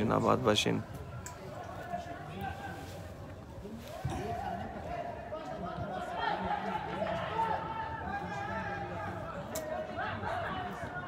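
Spectators chatter in the distance outdoors.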